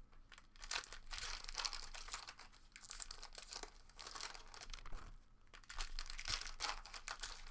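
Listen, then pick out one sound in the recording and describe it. Foil card wrappers crinkle and rustle close by.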